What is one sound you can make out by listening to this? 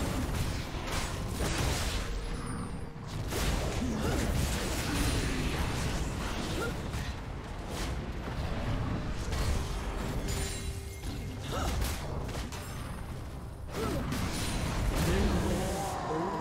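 Fantasy battle game sound effects of spells and weapon blows clash and burst.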